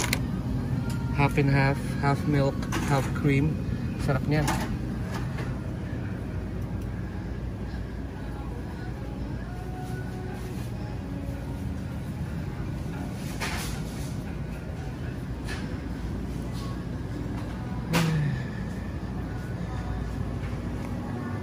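Refrigerated display cases hum steadily.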